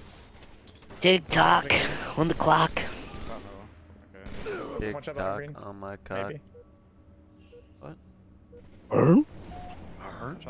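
Gunfire and explosions boom from a game.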